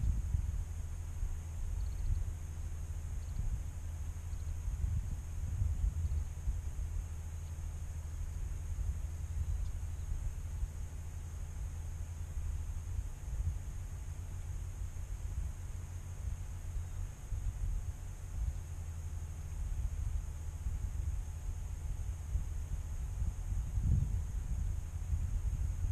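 Wind blows across open ground in gusts, rumbling against the microphone.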